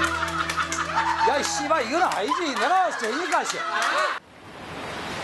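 A group of young women and men laugh loudly nearby.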